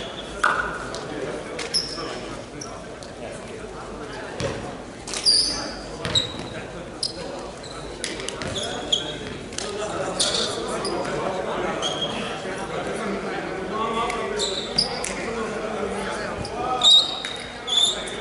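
Men call out and chatter across the court.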